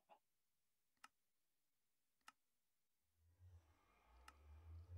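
A soft menu click sounds a few times.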